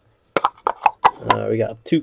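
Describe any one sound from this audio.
Hands slide a small cardboard box open.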